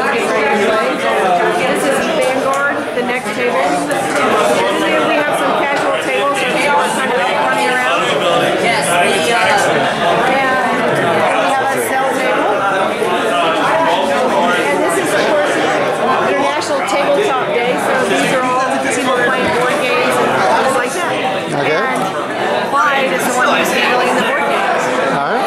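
A large crowd chatters steadily in an echoing room.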